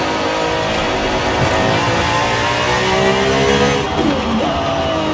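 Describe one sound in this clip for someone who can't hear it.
A car engine roars loudly as it accelerates, rising in pitch and dropping briefly with each gear change.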